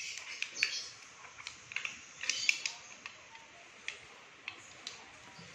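A small plastic wrapper crinkles and crackles between fingers.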